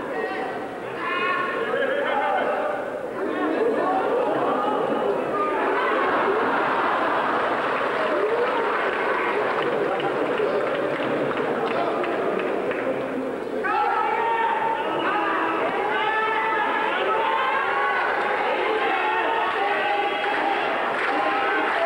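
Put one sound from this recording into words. A large arena crowd cheers.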